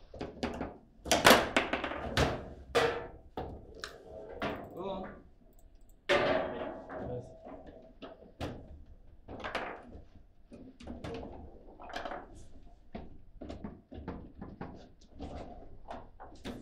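A foosball ball clacks against plastic players and rods.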